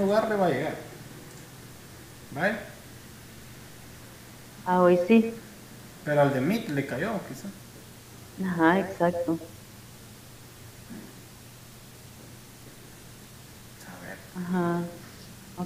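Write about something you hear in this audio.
A young woman speaks in short bursts through an online call.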